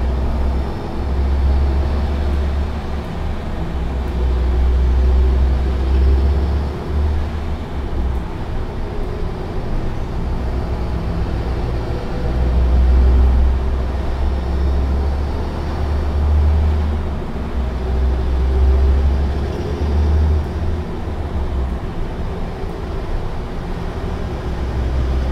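A truck engine drones steadily at low pitch.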